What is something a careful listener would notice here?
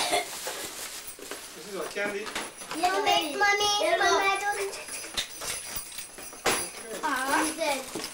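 A young boy talks excitedly.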